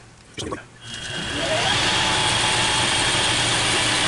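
A lathe motor starts up and runs with a steady whir.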